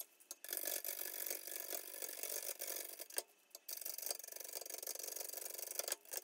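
A lathe chisel scrapes and hisses against spinning wood in bursts.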